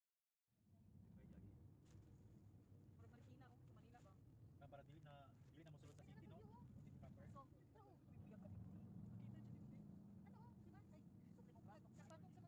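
A van's engine and tyres hum low from inside while cruising on a road.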